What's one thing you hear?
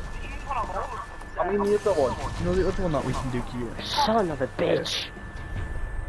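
Energy blasts crackle and whoosh.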